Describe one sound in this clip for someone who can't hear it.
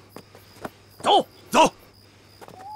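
A man shouts sharply.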